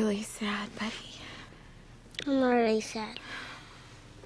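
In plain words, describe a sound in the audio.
A young boy speaks softly and pleadingly, close by.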